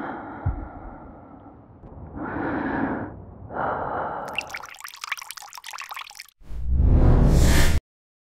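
Water pours from a glass and splashes onto hair.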